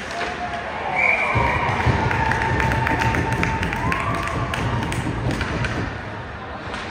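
A small crowd cheers and shouts in an echoing arena.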